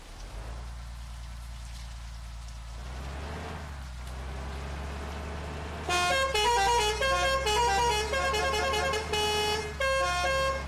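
A bus engine drones steadily as the bus speeds up.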